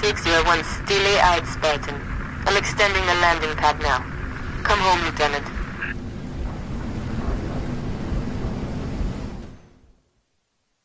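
An aircraft's engines roar steadily and loudly, then cut off.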